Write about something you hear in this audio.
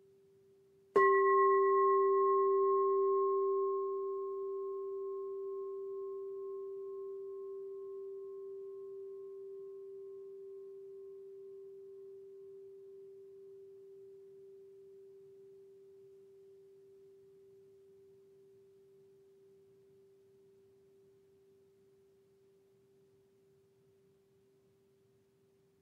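A singing bowl is struck once and rings with a long, slowly fading tone.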